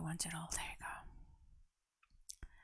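A young woman speaks softly into a close microphone.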